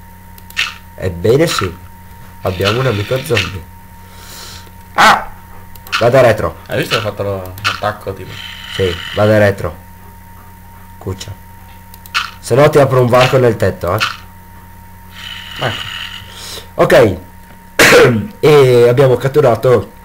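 Two young men talk with animation, close to a microphone.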